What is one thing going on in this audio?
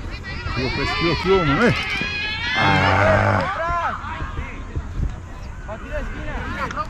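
Young players shout to each other in the distance outdoors.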